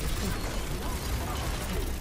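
An energy blast explodes with a loud crackling burst.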